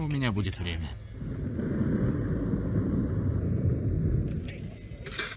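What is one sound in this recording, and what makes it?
A volcano rumbles with a deep roar.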